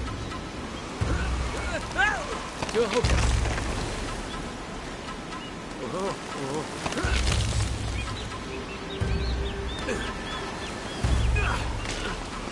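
A climber's hands thump and scrape against stone ledges.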